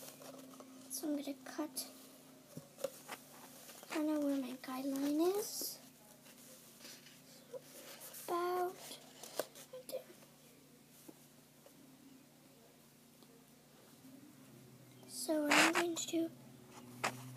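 A young girl speaks softly and briefly, close by.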